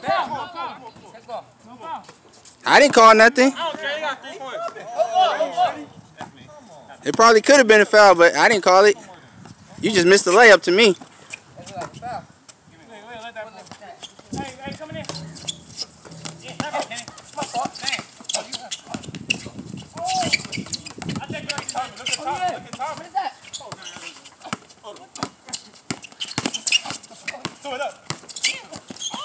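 Young men shout and talk loudly outdoors, close by.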